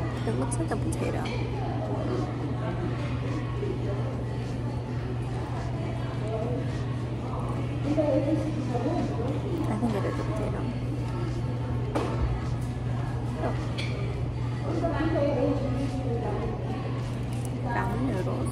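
A young woman talks softly and close by.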